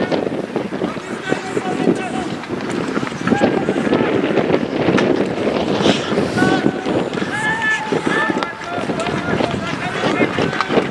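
Men shout to each other across an open rink.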